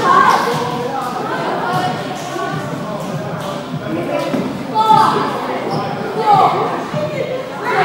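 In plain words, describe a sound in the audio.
Balls thud on a wooden floor.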